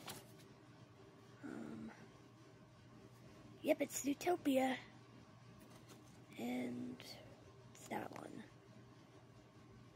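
A paper card rustles as it is handled.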